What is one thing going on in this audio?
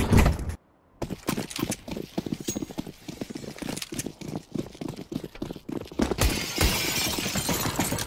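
Footsteps clatter quickly on a hard floor.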